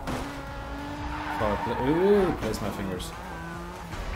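Tyres screech as a car slides through a turn.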